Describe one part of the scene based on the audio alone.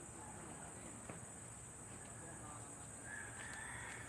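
A woman's sandals scuff softly on concrete as she walks past.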